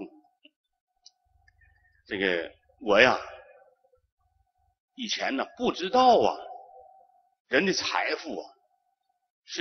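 A middle-aged man speaks slowly and calmly into a microphone, with pauses between phrases.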